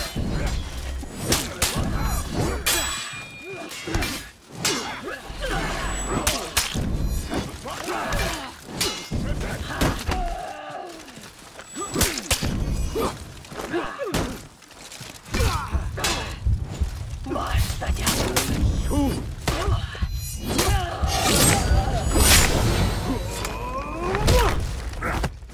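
Warriors grunt and shout as they fight.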